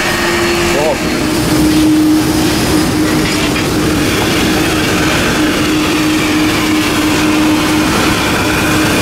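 Jet engines roar steadily outdoors.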